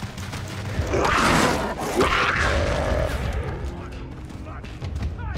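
A big cat snarls and growls close by.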